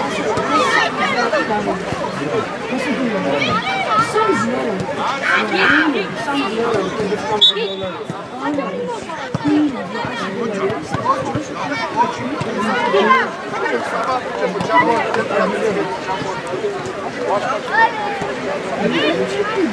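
Children shout and call out across an open outdoor pitch.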